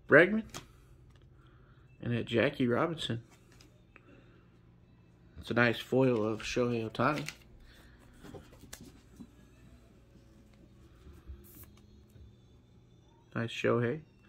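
Trading cards slide and tap against each other in hands.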